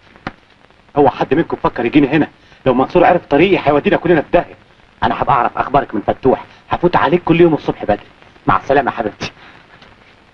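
A man speaks urgently and with animation, close by.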